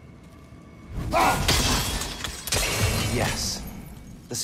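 An axe strikes a metal lantern with a loud clang.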